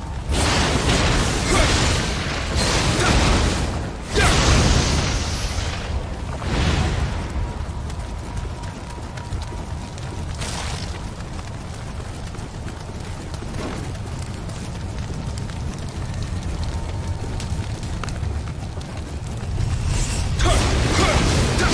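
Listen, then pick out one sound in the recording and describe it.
Blades clash and slash in a fierce fight.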